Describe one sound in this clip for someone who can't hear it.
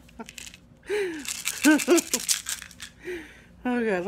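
Pills rattle in a plastic bottle.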